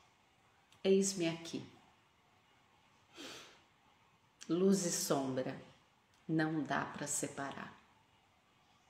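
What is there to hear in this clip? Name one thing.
A woman speaks calmly and close, in short phrases with pauses.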